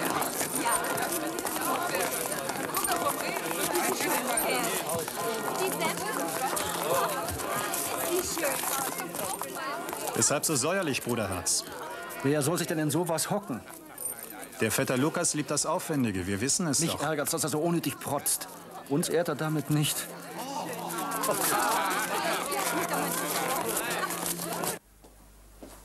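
A crowd of people chatter and murmur outdoors.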